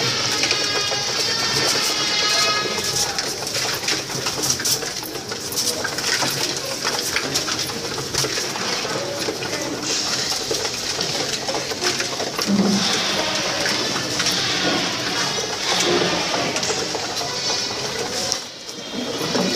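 Pigeons peck rapidly at grain, tapping and rustling.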